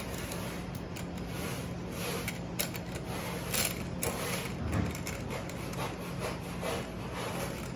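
Metal wire racks clink and rattle against each other.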